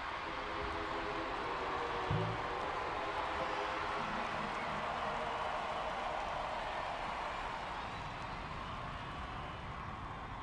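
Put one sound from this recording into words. Loud rock music plays with electric guitar and keyboard.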